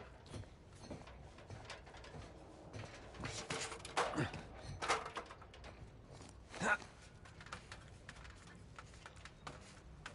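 Hands and boots clank on a metal ladder during a climb.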